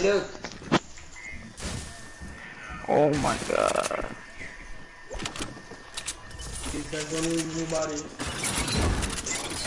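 Building pieces snap into place with sharp knocks.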